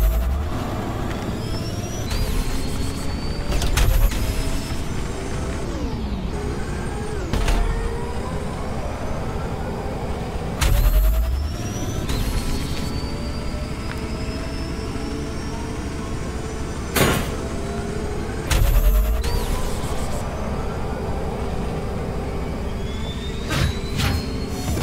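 A racing engine hums and whines steadily at high speed.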